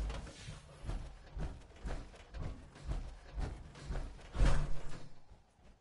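Heavy metal footsteps thud at a steady pace.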